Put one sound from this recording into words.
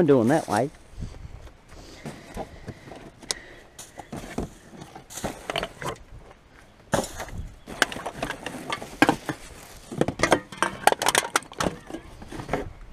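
Cans and bottles clink as they are picked up by hand.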